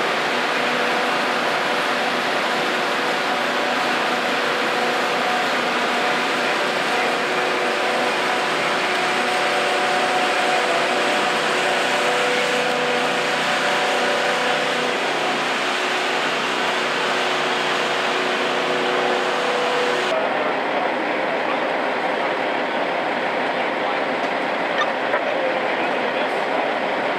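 A fire engine's pump engine drones steadily close by.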